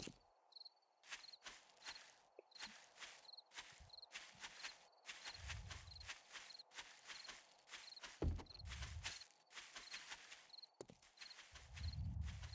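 Footsteps rustle through dry grass and brush.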